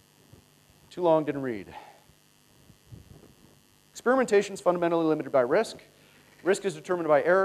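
A man speaks calmly into a microphone, with pauses.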